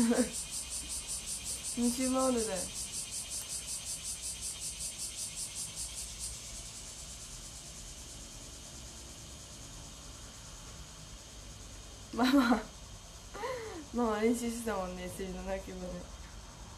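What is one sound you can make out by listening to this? A young woman speaks casually and close by, through a microphone.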